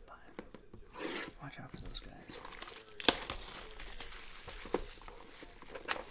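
Plastic wrap crinkles as it is torn off a box.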